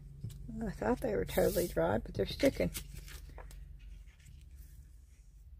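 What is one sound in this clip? Sheets of paper rustle and slide as they are handled.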